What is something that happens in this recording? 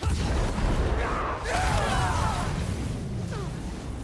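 Electricity crackles and bursts loudly.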